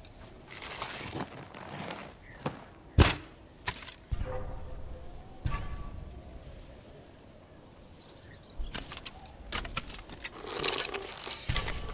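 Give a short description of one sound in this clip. A bowstring snaps sharply as an arrow is loosed.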